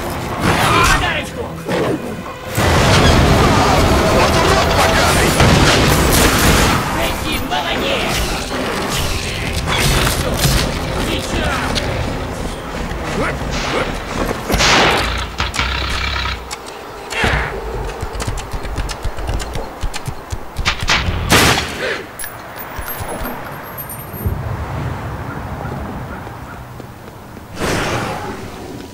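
Pistols fire in rapid shots.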